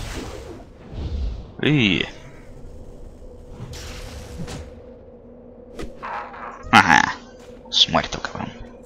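Magic blasts and blows strike in a fight.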